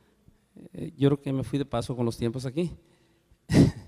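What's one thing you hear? A middle-aged man speaks into a microphone over loudspeakers in a large room.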